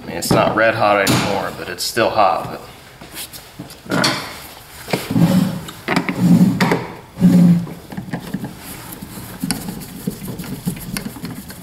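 Hands rub and tap against a hard plastic panel.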